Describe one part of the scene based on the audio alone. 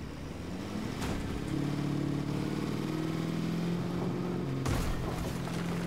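A truck bumps and thuds over rough ground.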